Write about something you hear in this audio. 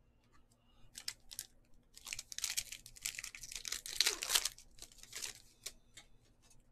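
A foil wrapper crinkles loudly as a pack is torn open.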